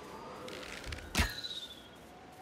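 A blade swishes sharply through the air.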